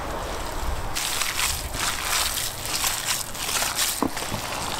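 Hands squelch and squish raw minced meat.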